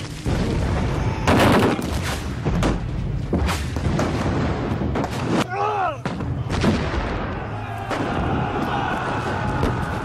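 Rifles fire in sharp volleys.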